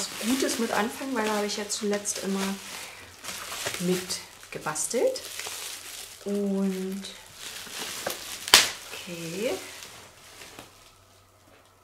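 Bubble wrap crinkles and rustles in a woman's hands.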